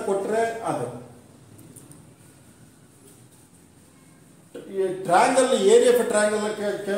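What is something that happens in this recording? A middle-aged man speaks calmly and clearly into a close microphone, explaining.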